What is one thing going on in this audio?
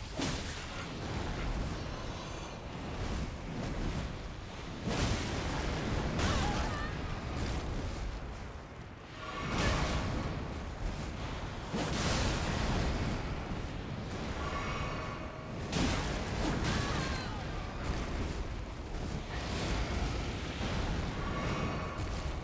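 Blades slash and clang in a fierce fight.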